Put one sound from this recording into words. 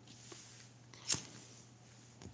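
A lighter clicks and flicks on close by.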